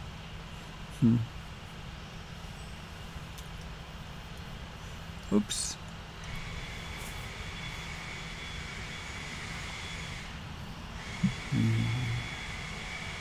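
An elderly man murmurs briefly, close to a microphone.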